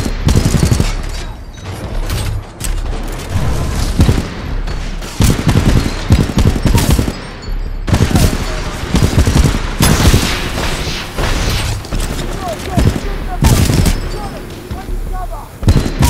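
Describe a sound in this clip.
A heavy gun fires loud bursts of shots.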